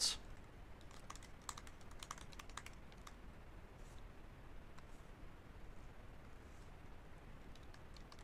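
A keyboard clicks with quick, light keystrokes.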